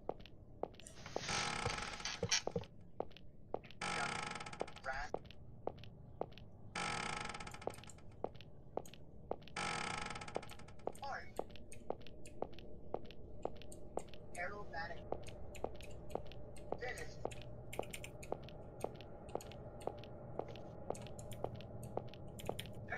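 Footsteps tap at an even pace.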